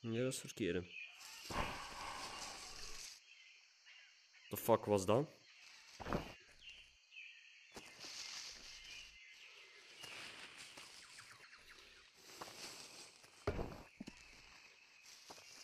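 Large leaves rustle as they are pushed aside.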